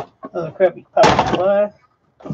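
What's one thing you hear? A metal box is set down with a clunk.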